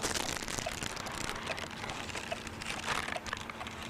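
A stiff album page rustles as it is turned.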